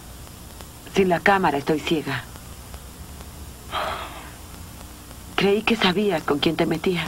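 A young woman answers up close in a tense voice.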